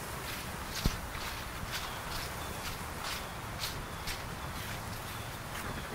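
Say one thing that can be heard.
Footsteps rustle through dry leaves on grass.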